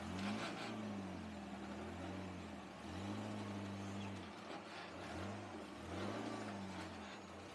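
An off-road buggy engine idles low and revs in bursts.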